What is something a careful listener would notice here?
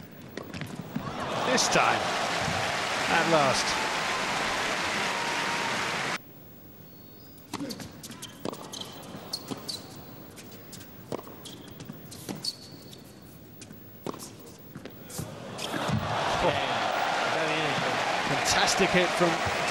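A large crowd applauds and cheers in a big hall.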